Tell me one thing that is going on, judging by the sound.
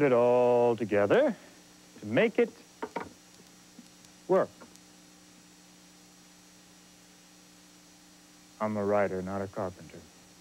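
A man speaks with animation, in short bursts.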